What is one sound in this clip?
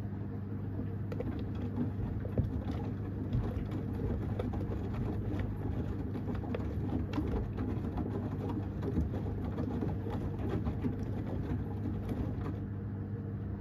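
Wet laundry sloshes and thumps as a washing machine drum turns.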